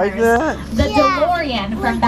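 A small boy shouts excitedly close by.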